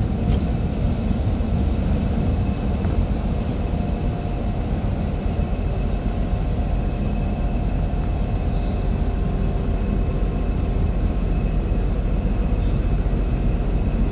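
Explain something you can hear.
A diesel locomotive rumbles as it pulls a train away into the distance.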